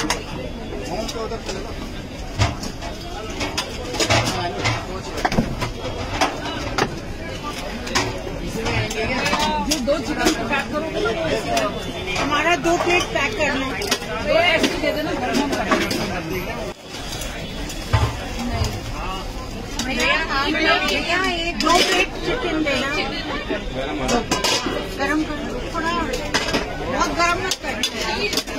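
A crowd of men and women talk and call out all around, outdoors.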